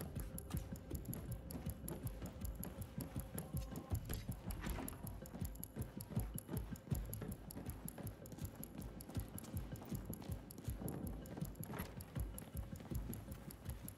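Footsteps thud steadily on a hard floor.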